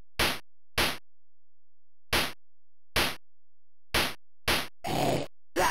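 A sword swishes sharply in short, quick slashes.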